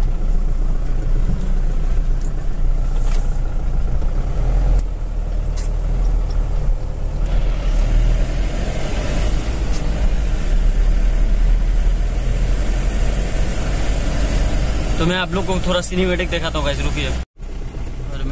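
A car engine hums steadily as tyres roll over a smooth road.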